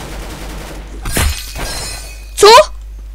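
A short victory chime rings out.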